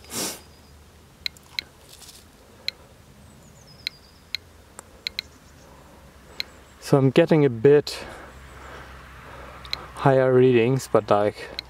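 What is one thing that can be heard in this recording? A radiation counter clicks now and then.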